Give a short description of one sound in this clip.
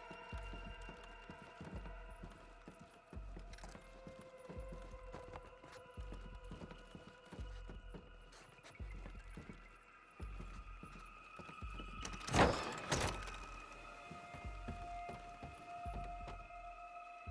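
Footsteps thud on a wooden floor at a steady walking pace.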